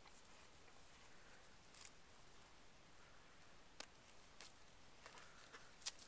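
A horse tears and crunches grass as it grazes close by.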